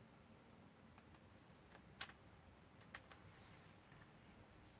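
Computer keys click.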